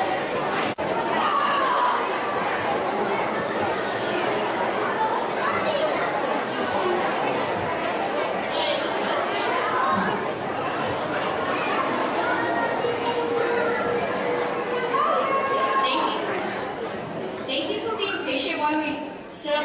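A young boy speaks into a microphone, heard through loudspeakers.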